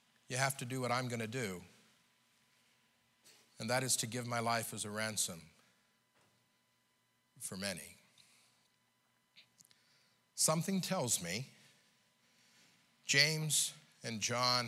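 A middle-aged man preaches through a microphone in bursts, with pauses between phrases.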